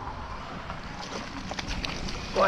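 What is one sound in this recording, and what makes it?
A hooked fish thrashes and splashes at the water's surface.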